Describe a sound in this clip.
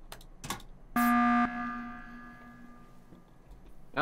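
An alarm blares once and slowly fades.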